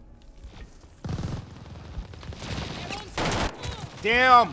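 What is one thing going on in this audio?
Gunfire bursts out in a video game.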